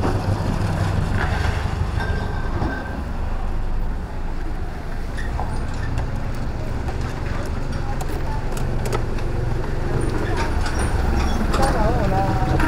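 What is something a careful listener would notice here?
A scooter engine idles with a low, steady rumble.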